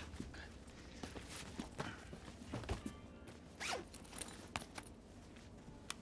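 A zipper rasps on a bag.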